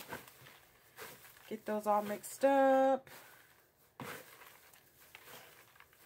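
Small plastic pieces rustle and rattle as hands stir them in a plastic bowl.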